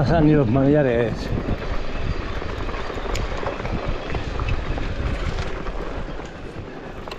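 Bicycle tyres crunch over a rough dirt trail.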